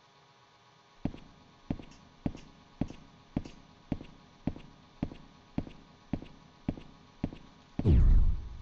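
Slow, even footsteps thud on a hard floor.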